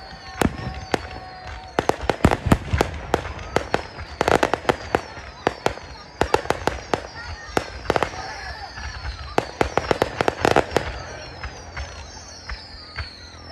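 Aerial firework shells boom and bang outdoors.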